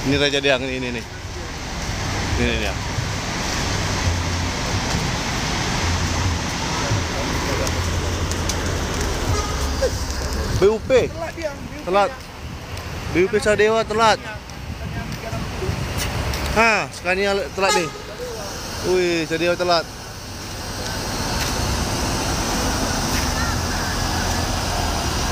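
A large bus engine idles and rumbles close by.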